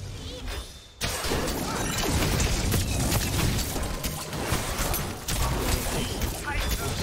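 Magic blasts and combat effects crackle and boom loudly.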